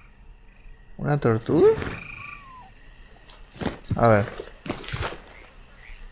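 A horse whinnies close by.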